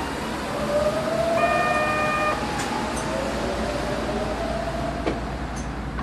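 A train's electric motors whine with a gliding pitch.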